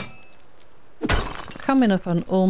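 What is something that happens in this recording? Rock crumbles and breaks apart.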